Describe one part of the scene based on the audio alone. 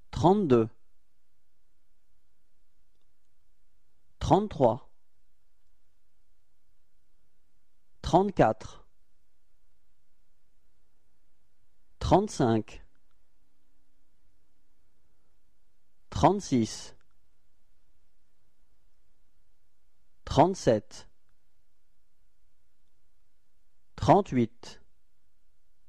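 A young man says a short word calmly and clearly, again and again at even pauses.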